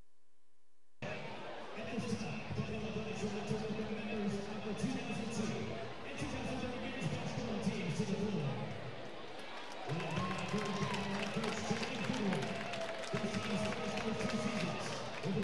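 A large crowd cheers and claps in an echoing hall.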